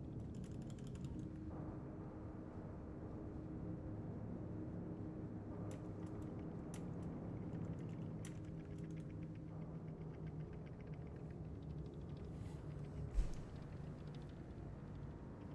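A young man talks casually and closely into a microphone.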